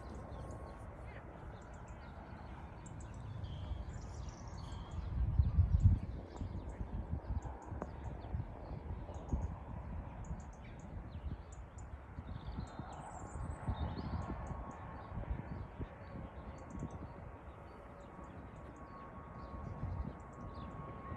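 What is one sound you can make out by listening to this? Wind gusts outdoors, rumbling low and strongest in a brief burst.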